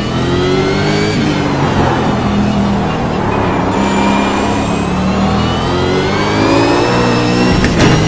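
A racing car engine revs high and drops as the gears shift.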